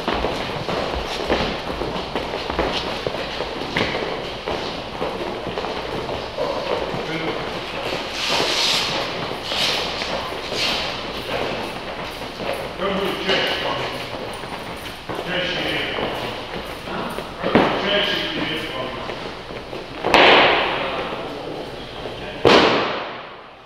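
Weight plates knock and thud on a rubber floor.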